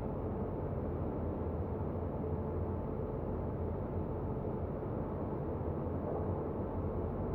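An electric train rumbles steadily along the rails.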